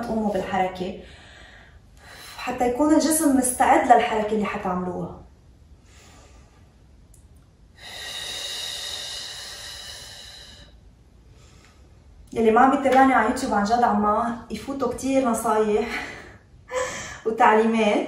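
A young woman talks calmly and clearly into a nearby microphone.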